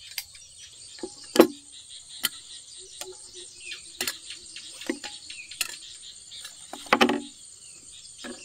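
Chopsticks and a spoon clink and tap against a bowl.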